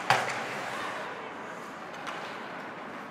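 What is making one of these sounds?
A hockey stick cracks against a puck.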